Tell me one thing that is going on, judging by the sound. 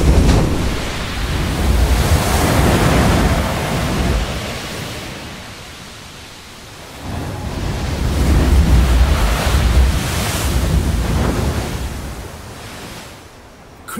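Heavy ocean waves crash and roar against rocks.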